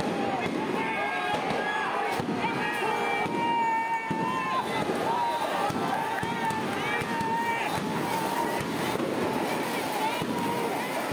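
A crowd of men shouts and yells nearby, outdoors.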